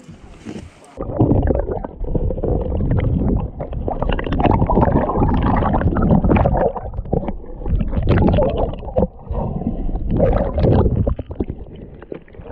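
Water sloshes and bubbles loudly underwater.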